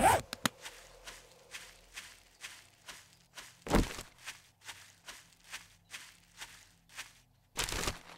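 Footsteps crunch through dry grass at a steady walking pace.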